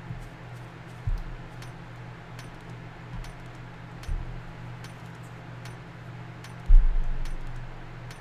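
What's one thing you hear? A stone axe strikes rock with dull thuds.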